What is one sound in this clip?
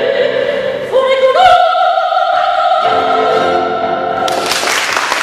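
A string ensemble plays a final held chord in an echoing hall.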